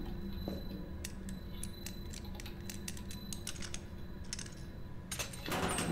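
A combination lock's dials click as they turn.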